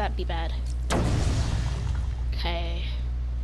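An explosion bursts with a deep, rumbling boom.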